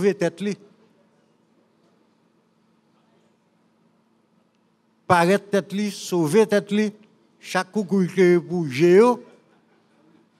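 An elderly man speaks animatedly into a microphone, with pauses.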